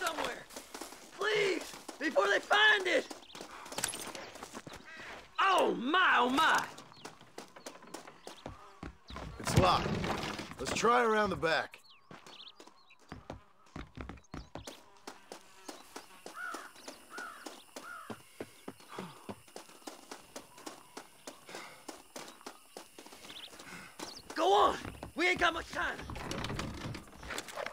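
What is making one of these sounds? Footsteps hurry over ground and wooden boards.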